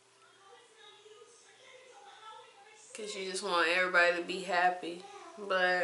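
A young woman speaks calmly, close up.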